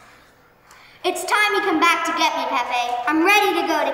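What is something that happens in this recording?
A young girl sings in a clear voice, close by.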